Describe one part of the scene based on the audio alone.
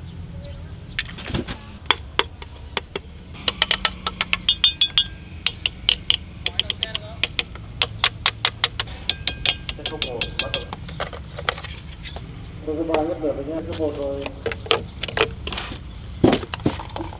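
Plastic parts click and clatter as a toy is handled.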